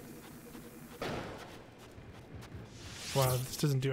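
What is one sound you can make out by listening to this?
A bomb explodes with a sharp blast.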